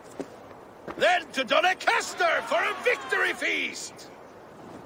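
A man calls out loudly.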